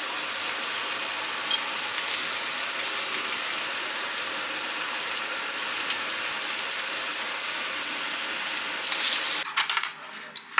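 A pot of soup bubbles and sizzles loudly.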